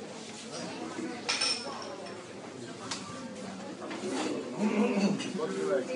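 A crowd chatters.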